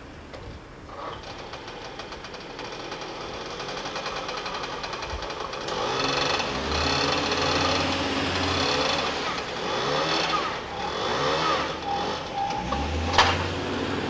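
A scooter engine starts and idles, revving unevenly.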